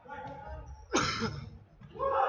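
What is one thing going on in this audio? A ball is kicked hard on an indoor court.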